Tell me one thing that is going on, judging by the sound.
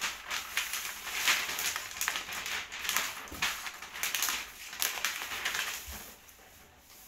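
Plastic wrapping crinkles and rustles as it is pulled off a cardboard box.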